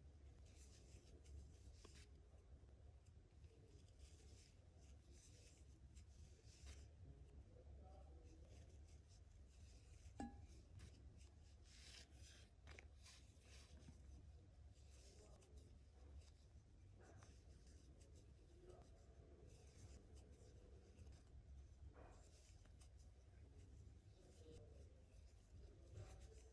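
Yarn rustles softly as a crochet hook pulls it through stitches.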